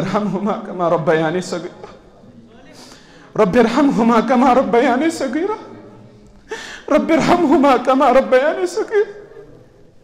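A man speaks with deep emotion through a microphone.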